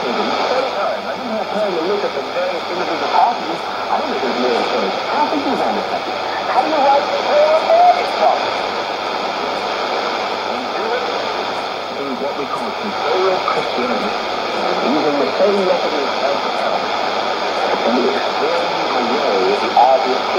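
A radio plays a broadcast through its small loudspeaker.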